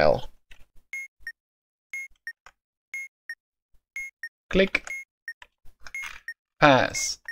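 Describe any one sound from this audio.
A game bomb timer beeps steadily once a second.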